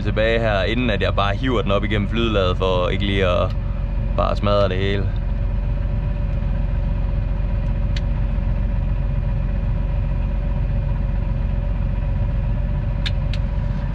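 A tractor engine hums steadily and low from inside the cab.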